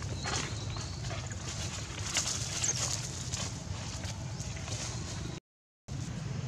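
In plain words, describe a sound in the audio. Dry leaves rustle as a monkey moves over the ground.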